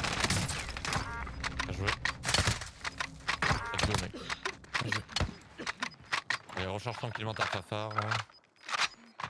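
A young man talks with animation through a headset microphone.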